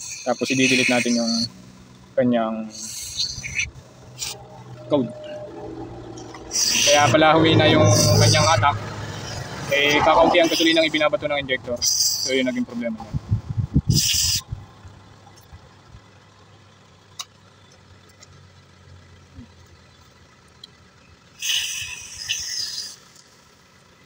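A spray nozzle hisses in short bursts.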